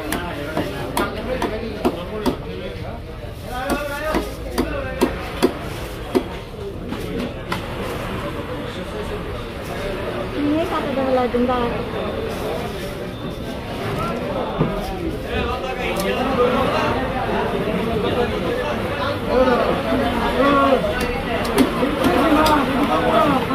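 A wooden mallet knocks sharply on a blade chopping through fish.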